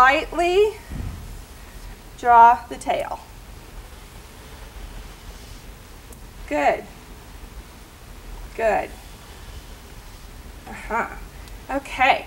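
A woman speaks calmly in short phrases with pauses, close to a microphone.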